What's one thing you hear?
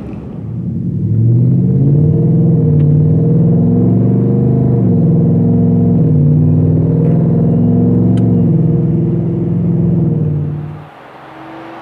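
A truck exhaust drones loudly and deeply from inside the cab.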